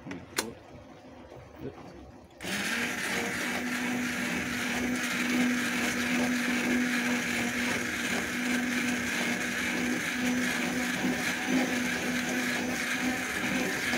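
A metal ladle stirs and scrapes against a pan.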